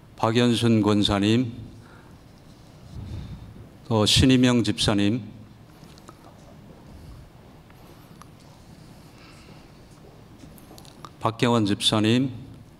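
A middle-aged man speaks calmly into a microphone, in short phrases with long pauses, in a reverberant hall.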